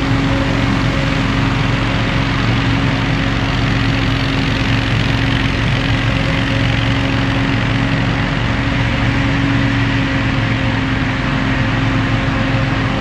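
A lawn mower engine drones steadily in the distance.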